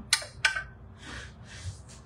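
A wooden spoon stirs inside a metal jug.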